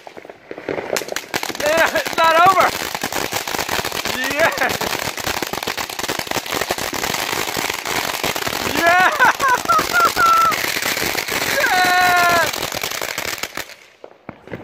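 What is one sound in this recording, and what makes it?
A firework fountain hisses and crackles loudly, nearby.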